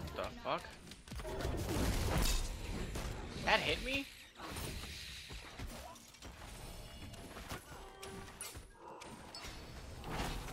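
Magic blasts crackle and boom during a fight.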